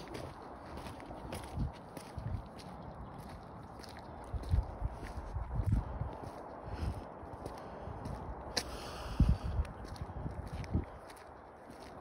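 Footsteps scuff on a paved road.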